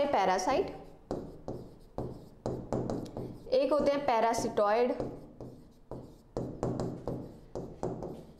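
A marker squeaks on a board.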